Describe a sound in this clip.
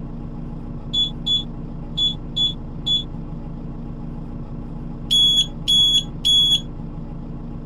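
A ticket machine beeps in short electronic tones.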